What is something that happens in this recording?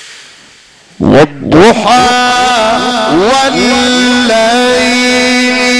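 A man chants loudly into a microphone with a long, wavering melody, heard through a reverberant loudspeaker.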